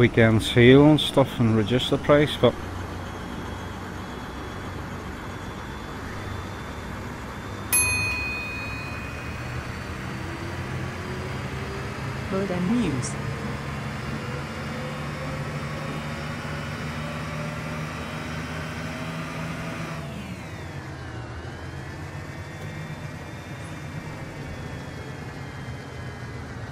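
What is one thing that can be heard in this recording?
A diesel city bus engine drones as the bus accelerates along a road.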